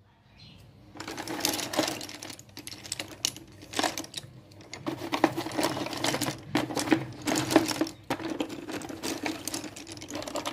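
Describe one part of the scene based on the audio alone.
Wooden sticks rattle and clatter as a hand rummages through a pile.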